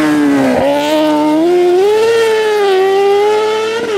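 Tyres skid and crunch over loose gravel.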